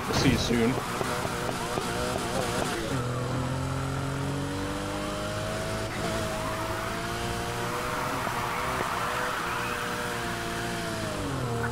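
A racing car engine roars and revs up and down.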